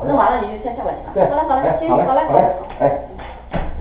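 A woman talks close by.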